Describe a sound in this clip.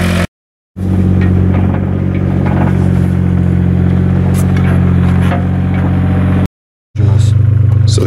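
A trowel scrapes in dry soil.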